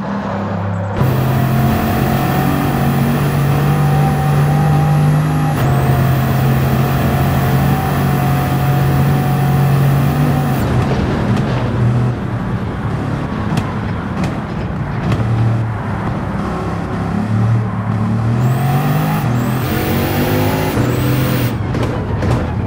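Turbochargers whistle high above a hypercar engine.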